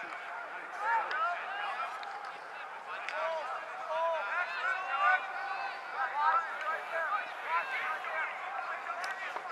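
Young players shout and call to each other across an open field.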